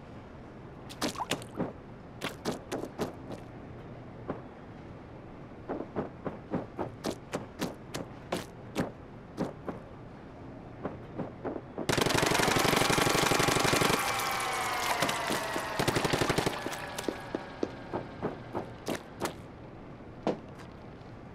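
Quick light footsteps patter across a hard floor.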